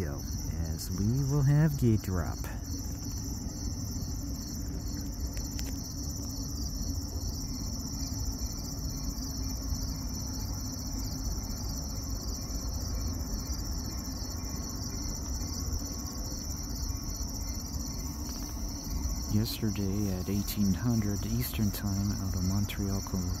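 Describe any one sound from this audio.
A railway crossing bell rings rapidly and steadily.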